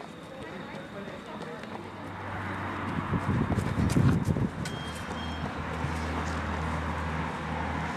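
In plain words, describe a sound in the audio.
Running shoes patter on asphalt.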